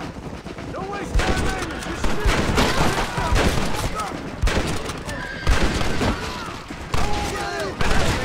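Horses gallop with thudding hooves.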